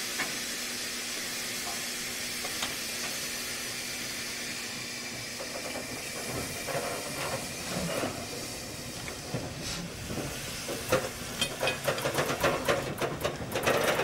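A steam locomotive hisses steadily nearby.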